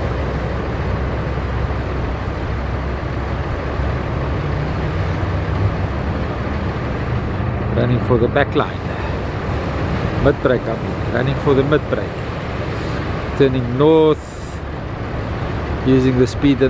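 Surf waves crash and break.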